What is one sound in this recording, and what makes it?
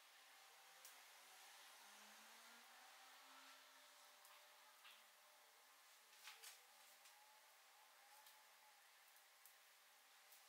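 A small fire crackles and pops softly.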